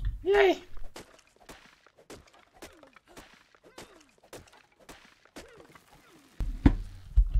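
An axe chops into a tree trunk with repeated knocks.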